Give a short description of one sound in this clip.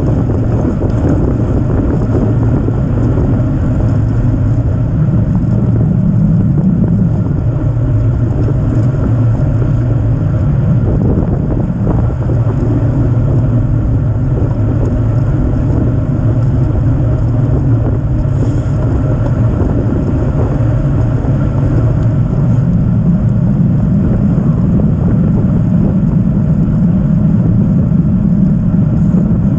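Wind rushes steadily past a moving bicycle.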